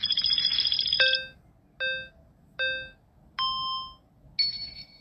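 A countdown beeps in short, evenly spaced tones.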